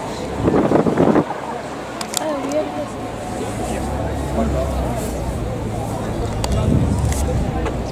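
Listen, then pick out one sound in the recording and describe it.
A crowd of people chatter in the background outdoors.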